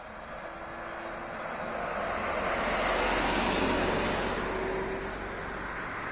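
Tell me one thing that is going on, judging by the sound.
A car drives past on a nearby road.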